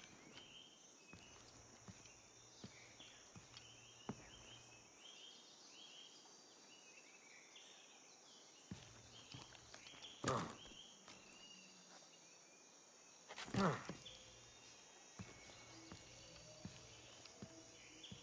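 Birds chirp steadily.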